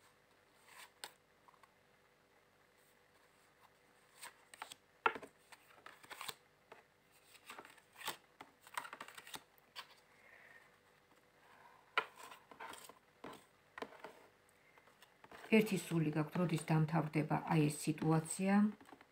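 Playing cards snap and tap against a table.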